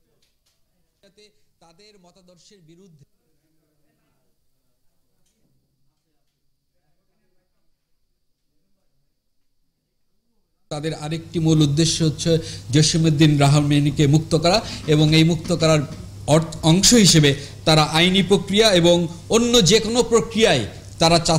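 A man speaks firmly into microphones, with a slight echo.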